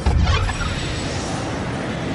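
A magical portal whooshes and crackles with energy.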